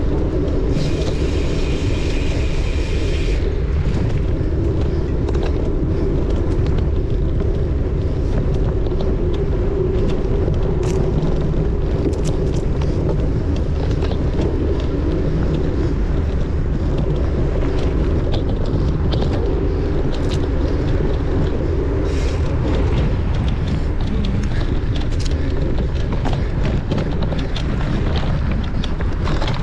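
A motorcycle engine hums steadily.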